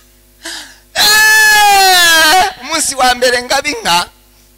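A man shouts loudly and laughs through a microphone.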